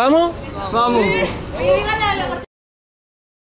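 Young people laugh close by.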